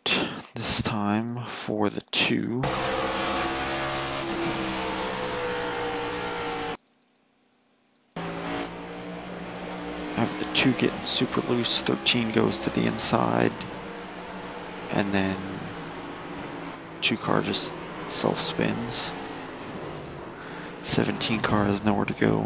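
Racing car engines roar at high speed.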